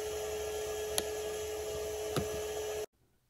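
A plastic box lid clicks and knocks.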